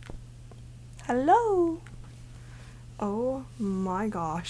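A young woman speaks playfully into a close microphone.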